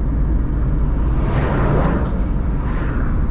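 A large truck roars past in the opposite direction with a rushing whoosh.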